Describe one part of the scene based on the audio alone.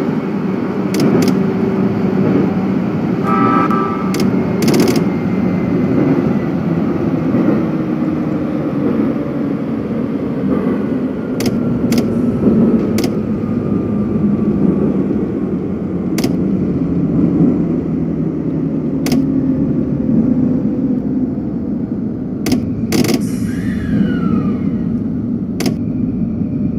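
Train wheels click over rail joints.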